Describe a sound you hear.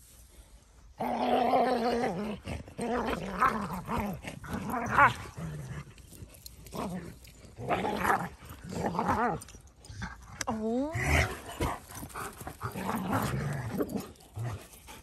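Dogs growl and yelp playfully as they wrestle.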